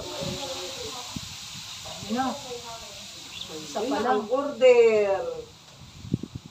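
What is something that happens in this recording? A young woman speaks in an animated voice close by.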